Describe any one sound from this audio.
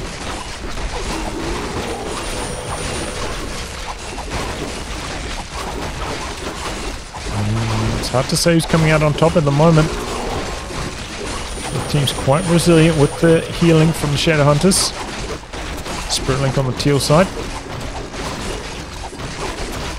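Swords clash and spells burst in a busy game battle.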